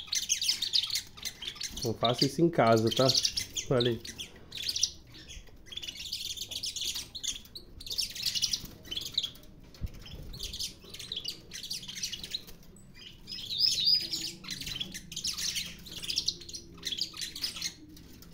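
Canaries sing with rapid trills and chirps.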